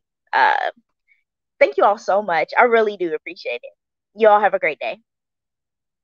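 A woman speaks with animation into a microphone over an online call.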